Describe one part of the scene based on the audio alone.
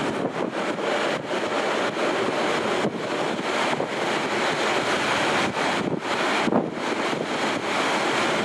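A train rumbles and rattles steadily along the track.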